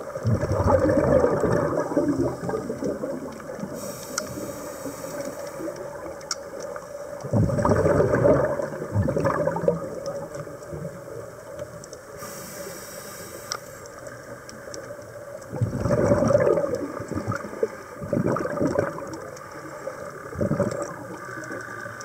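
Bubbles from a diver's breathing gurgle and rumble in loud bursts underwater.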